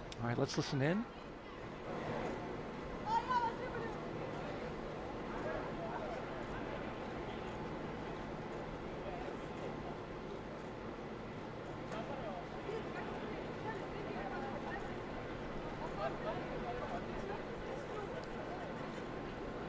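A crowd murmurs and chatters quietly outdoors.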